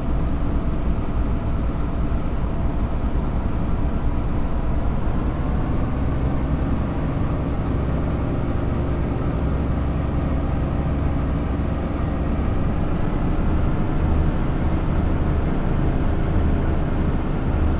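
A train's engine hums steadily and grows louder as it speeds up.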